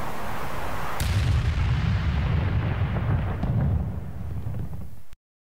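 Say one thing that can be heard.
A deep blast rumbles and rolls on.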